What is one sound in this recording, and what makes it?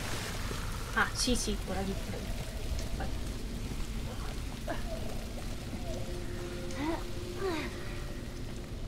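A young woman talks quietly close to a microphone.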